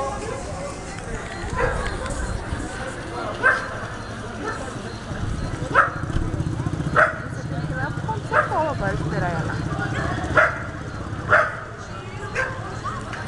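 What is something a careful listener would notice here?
A crowd of people chatters and shouts outdoors.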